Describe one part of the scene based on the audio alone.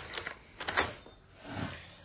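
Metal tools clink and rattle.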